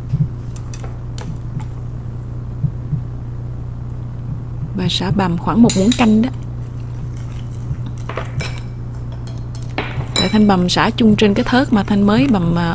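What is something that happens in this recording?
Chopsticks stir and scrape in a ceramic bowl of thick liquid.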